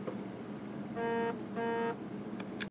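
A steady electronic tone beeps twice in short bursts.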